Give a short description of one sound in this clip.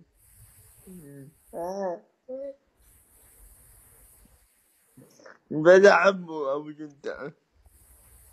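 A young man speaks casually over an online call, his voice heard through a phone.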